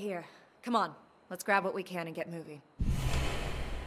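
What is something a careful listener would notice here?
A young woman speaks urgently.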